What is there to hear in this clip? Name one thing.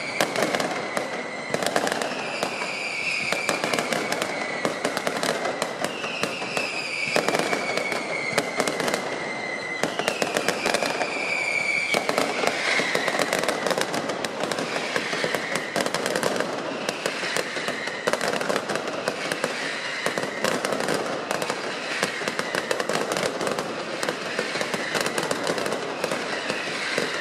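Fireworks crackle and bang rapidly and loudly, close by.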